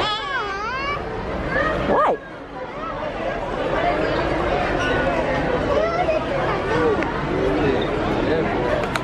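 A young boy talks close by.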